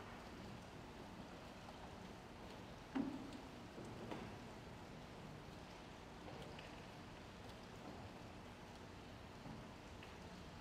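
Footsteps shuffle softly across a large echoing hall.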